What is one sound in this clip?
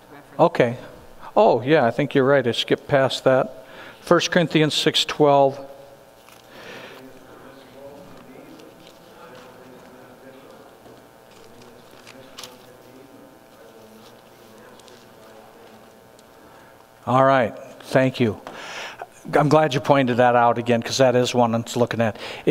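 A middle-aged man speaks to a group through a microphone in a large, echoing hall.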